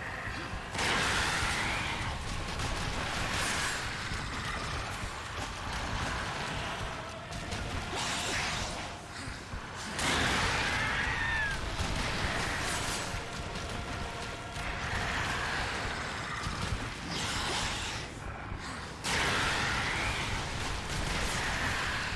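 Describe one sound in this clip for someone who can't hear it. A fiery explosion bursts with a loud roar.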